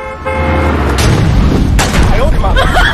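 A car crashes down onto the road with a loud metal bang.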